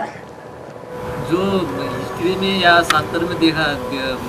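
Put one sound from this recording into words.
A middle-aged man speaks, heard up close.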